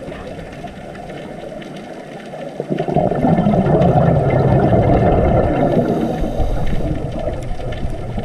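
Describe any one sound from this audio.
A low muffled underwater rush of water surges up and stays steady.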